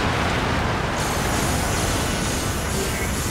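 A mechanical whoosh rises as a weapon charges up.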